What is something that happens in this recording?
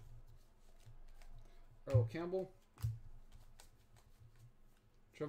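Trading cards slide and rustle softly against each other as they are flipped through.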